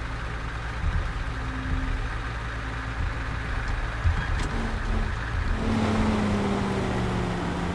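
A truck engine rumbles low as the truck drives slowly forward.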